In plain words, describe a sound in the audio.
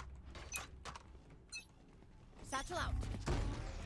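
A heavy gun fires with a loud electric crackle.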